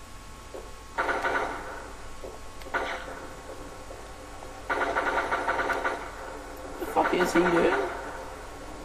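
An automatic gun fires in short rapid bursts.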